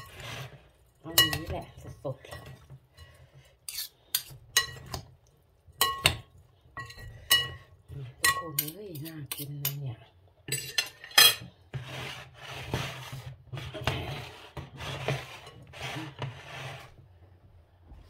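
Food rustles and squelches as it is mixed in a bowl.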